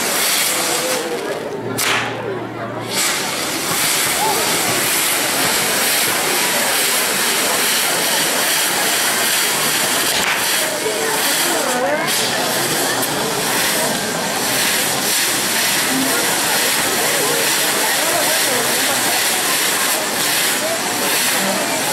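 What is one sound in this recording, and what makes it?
A spinning firework wheel hisses and roars loudly as it throws sparks.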